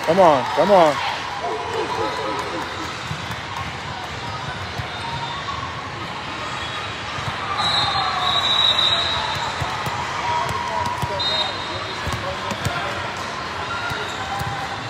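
A crowd of spectators and players chatter in a large echoing hall.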